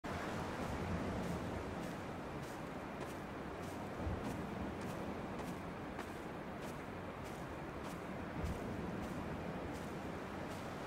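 Footsteps crunch on grass and stones.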